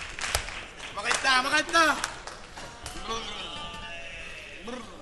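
A group of performers sings together through loudspeakers.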